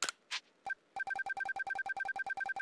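A rapid electronic ticking repeats steadily.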